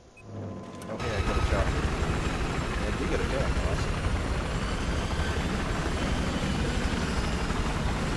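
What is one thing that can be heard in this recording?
A helicopter's rotor roars and thumps steadily.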